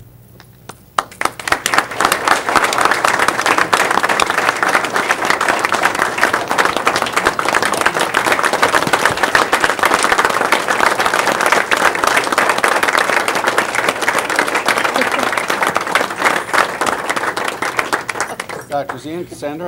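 A group of people applaud loudly.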